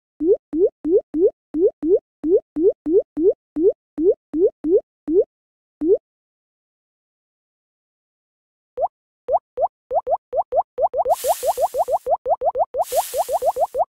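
Short rising bloops pop in quick succession as small balls tumble down.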